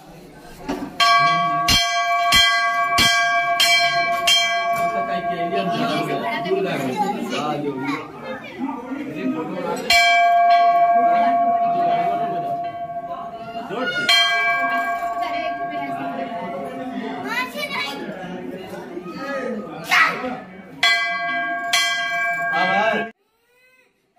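A metal bell rings loudly in repeated clangs.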